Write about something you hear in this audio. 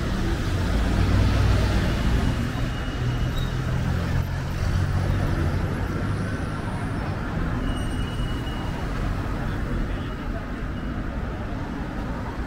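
Car engines hum steadily as traffic passes.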